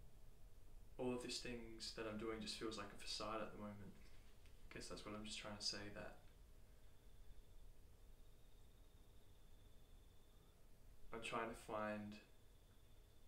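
A young man speaks calmly and close by, with short pauses.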